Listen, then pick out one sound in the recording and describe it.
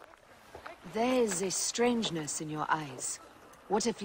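A woman asks questions in a calm, concerned voice.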